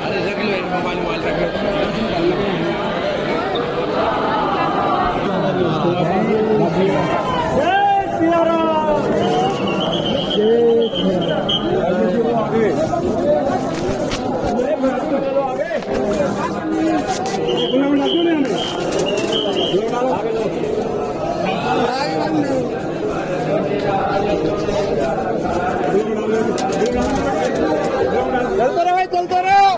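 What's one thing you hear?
A dense crowd of men and women chatters all around in an echoing hall.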